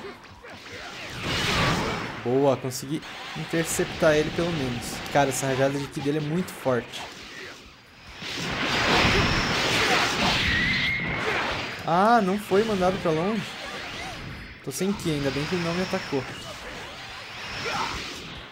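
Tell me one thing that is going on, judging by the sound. Energy blasts whoosh and roar.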